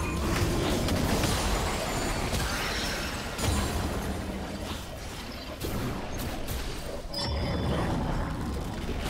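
Game characters' attacks clash and thud.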